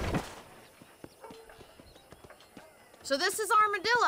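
A horse's hooves clop on dirt.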